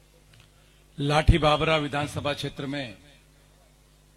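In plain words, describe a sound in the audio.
A middle-aged man speaks loudly into a microphone, heard through a loudspeaker.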